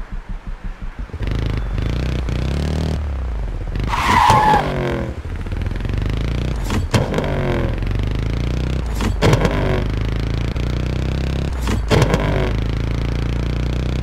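A motorcycle engine revs and roars steadily.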